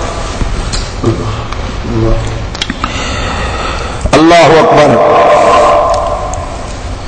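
A man recites in a chanting voice through a microphone.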